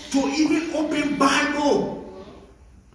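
A man sings loudly through a microphone in an echoing hall.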